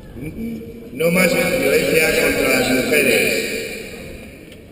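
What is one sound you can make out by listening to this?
A crowd of voices briefly rises in a loud burst.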